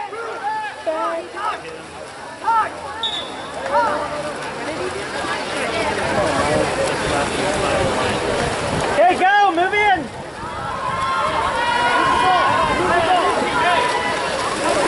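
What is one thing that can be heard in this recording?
Spectators shout and cheer outdoors.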